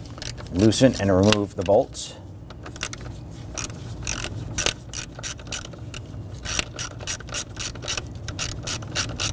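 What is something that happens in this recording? Rubber gloves rub and squeak against plastic.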